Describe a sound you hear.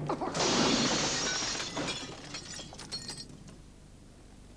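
Window glass shatters loudly and shards tinkle down.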